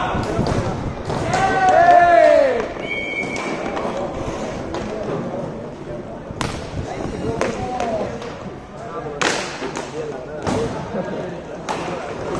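Hockey sticks clack sharply against a ball and the floor.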